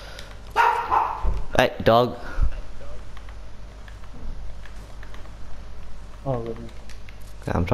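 Building pieces snap into place with quick clacks.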